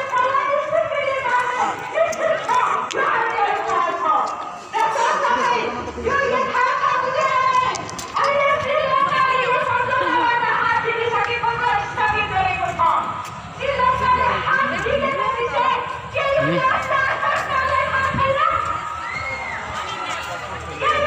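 A crowd murmurs in the street outdoors.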